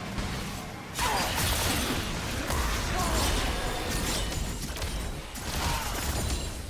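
Blows and hits clash rapidly during a game fight.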